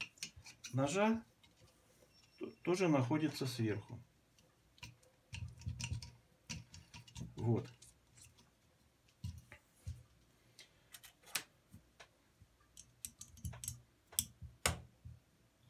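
Small metal parts click and clink against each other.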